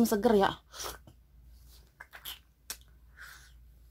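A young woman slurps and chews fruit pulp close to a microphone.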